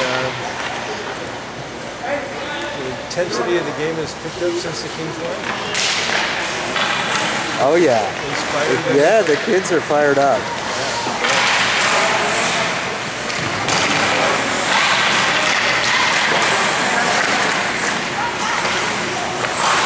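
Ice skates scrape and swish across the ice in a large echoing rink.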